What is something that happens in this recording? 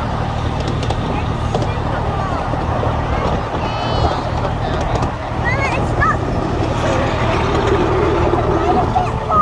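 A miniature train rumbles and clatters steadily along its track.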